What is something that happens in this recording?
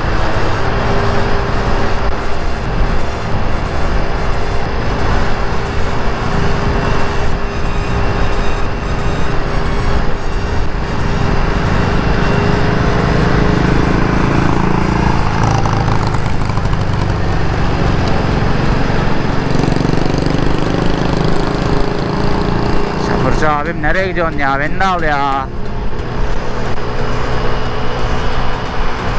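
Wind buffets loudly outdoors while riding.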